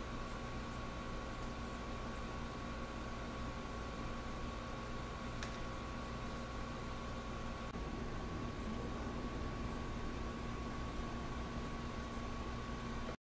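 A small electric massager hums steadily close by.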